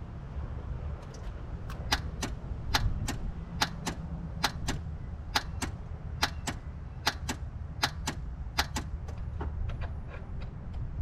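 A car engine makes a sharp, regular ticking.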